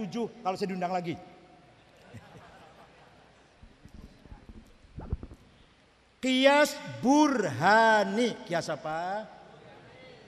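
An elderly man speaks with animation through a microphone in an echoing hall.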